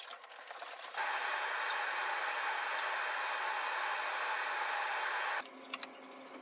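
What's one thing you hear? A sliding table saw runs, cutting wood.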